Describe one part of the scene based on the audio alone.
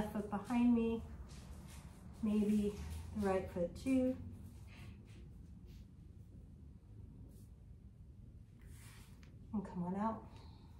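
A woman speaks calmly and softly nearby.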